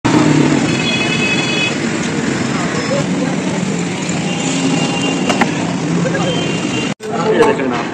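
A busy street crowd murmurs and chatters in the background.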